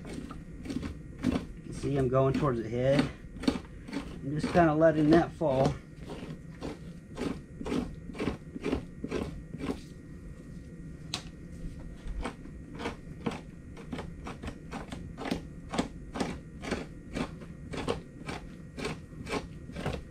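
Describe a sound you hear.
A knife scrapes rhythmically along a sharpening steel.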